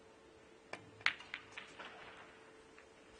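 Snooker balls clack against each other.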